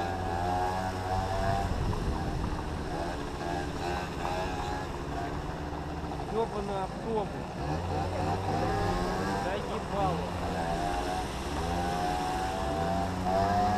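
A dirt bike engine revs and buzzes up close, rising and falling in pitch.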